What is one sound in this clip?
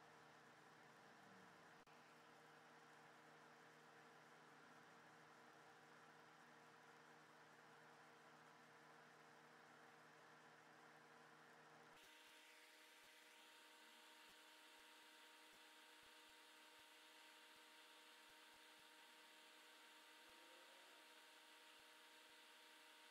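Tweezers tick lightly against a circuit board.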